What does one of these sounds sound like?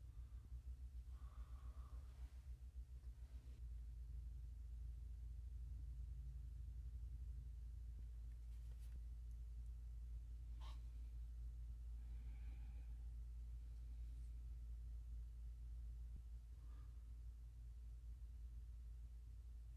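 Small plastic pieces click softly as fingers fit them together.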